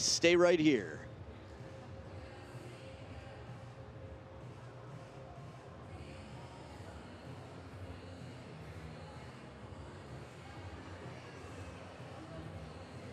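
A large crowd murmurs softly in a big hall.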